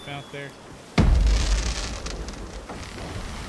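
Fireworks boom and crackle overhead.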